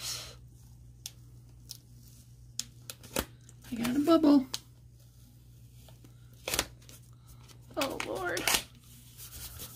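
Paper rustles and crinkles as pages are folded and turned.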